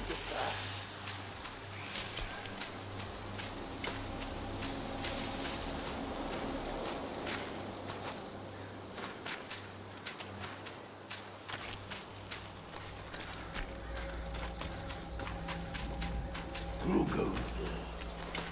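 Footsteps patter on the ground.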